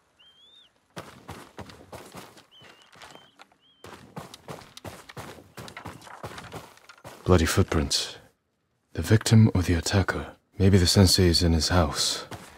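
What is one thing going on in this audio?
Footsteps tread across a wooden floor.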